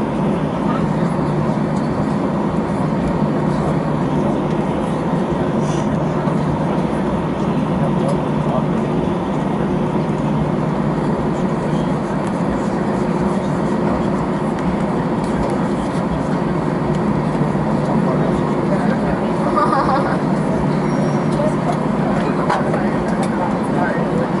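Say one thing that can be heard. Airliner wheels rumble over the taxiway.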